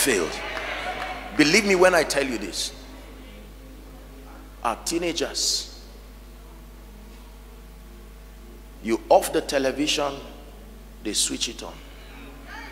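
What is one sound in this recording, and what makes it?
A man speaks in short bursts with pauses.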